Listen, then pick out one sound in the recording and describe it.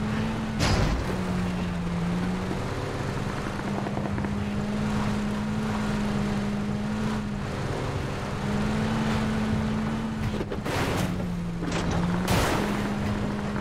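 A truck bumps and thuds over rough ground.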